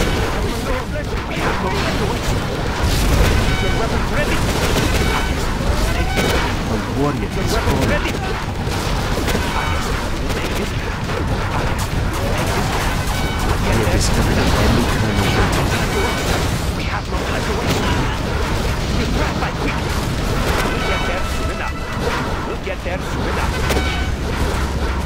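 Gunfire rattles rapidly throughout the battle.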